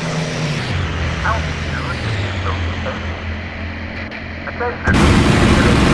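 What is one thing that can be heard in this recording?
A propeller aircraft engine drones steadily in the distance.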